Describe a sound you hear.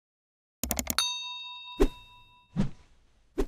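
A bell chimes with a ringing tone that slowly fades.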